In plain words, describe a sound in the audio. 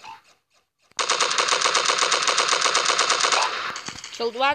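Rapid gunfire rattles in a fast, even burst.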